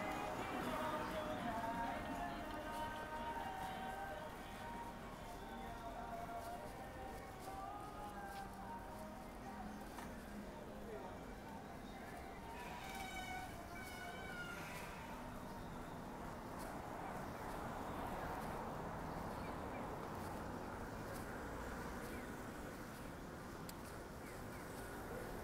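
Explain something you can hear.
Cars drive slowly past on a street nearby.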